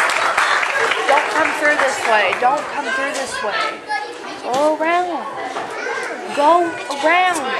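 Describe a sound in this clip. Young children talk and call out in high voices nearby.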